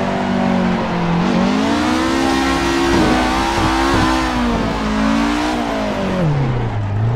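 Tyres squeal as a car drifts through corners.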